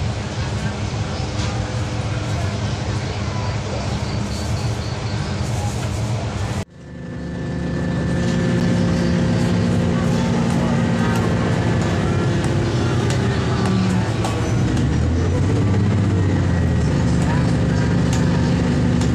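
A diesel railcar's engine drones as the railcar runs along.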